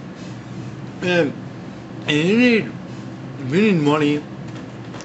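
A young man speaks close by in short, drawn-out, sing-song bursts.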